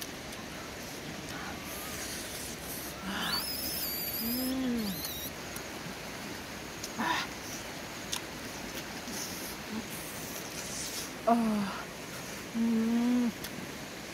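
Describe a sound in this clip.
A young woman chews food noisily close by.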